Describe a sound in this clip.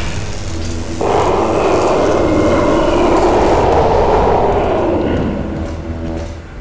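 A loud explosion roars and slowly dies away.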